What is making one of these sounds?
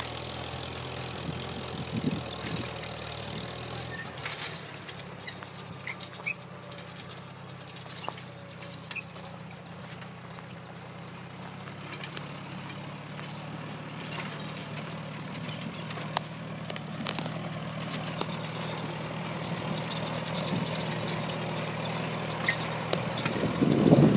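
A tractor engine rumbles steadily nearby, growing louder as it approaches.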